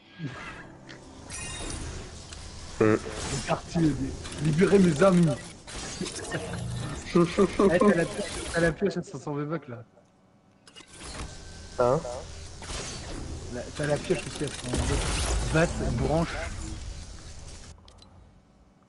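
Game sound effects whoosh and zap.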